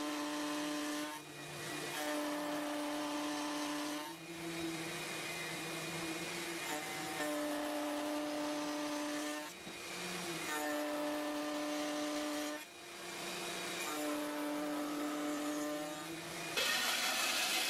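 A router table whines steadily as wood is pushed through it.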